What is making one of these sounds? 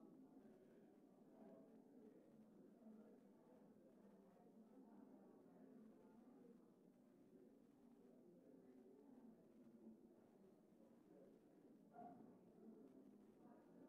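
Many men and women chatter quietly at a distance in a large room.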